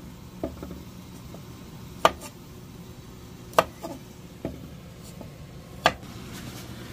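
A knife slices through radishes with sharp taps.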